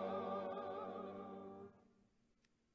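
A choir sings a held chord that fades out.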